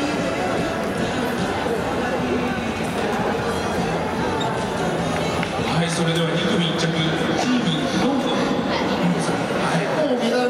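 A man speaks into a microphone over a loudspeaker, echoing in a large stadium.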